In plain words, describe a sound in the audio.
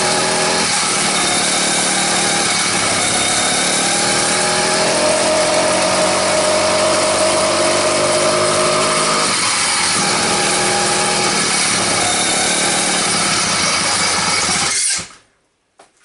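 A small engine runs loudly with a steady buzzing drone.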